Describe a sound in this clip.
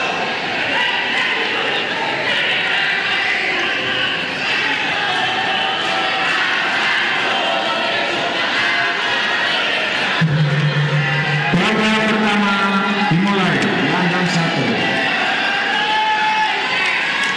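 A large crowd cheers and chatters in a big echoing hall.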